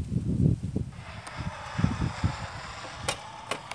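A small electric motor of a model machine whirs steadily.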